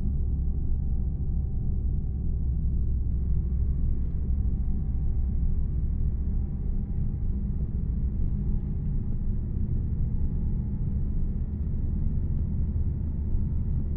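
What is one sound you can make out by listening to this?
A bus engine rumbles steadily as it drives.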